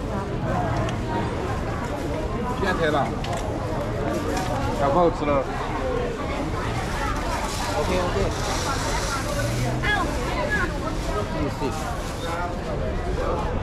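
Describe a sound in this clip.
A crowd chatters all around outdoors on a busy street.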